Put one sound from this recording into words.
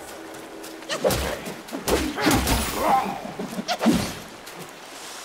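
A wooden staff whooshes and strikes in a scuffle.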